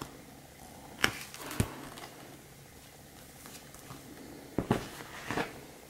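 A book knocks down onto a hard table.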